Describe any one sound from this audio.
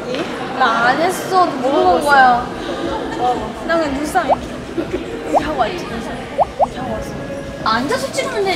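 Two young women talk and laugh together close by.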